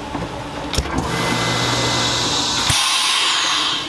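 A vacuum sealing machine hums steadily, then stops.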